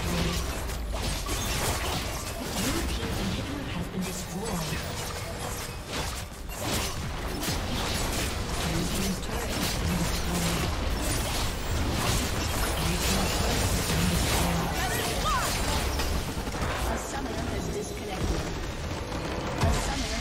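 Game spell effects and attacks crackle and clash rapidly.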